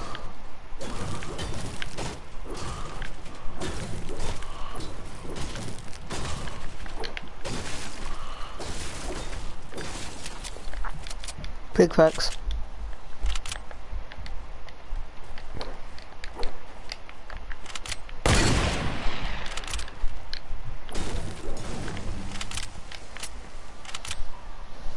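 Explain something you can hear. Footsteps patter on wood and grass.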